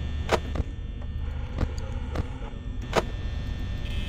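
Short sharp clicks sound as a security monitor switches between views.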